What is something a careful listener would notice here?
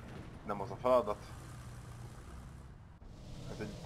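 A tank engine rumbles.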